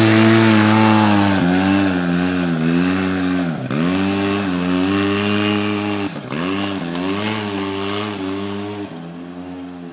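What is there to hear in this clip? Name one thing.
An off-road vehicle's engine roars and revs hard, then fades into the distance.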